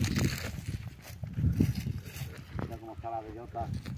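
A man walks on dry grass and earth.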